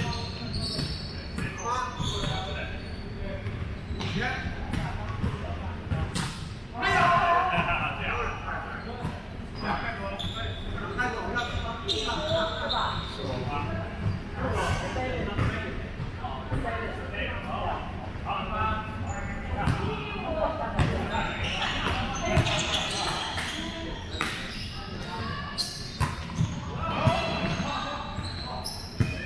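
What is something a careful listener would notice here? Several young adults call out and chat across the court.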